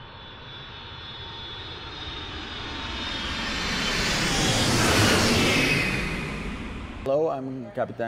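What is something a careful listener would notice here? A jet airliner roars past, swelling and then fading.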